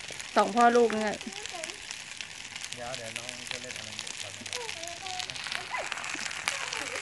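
A small child babbles nearby.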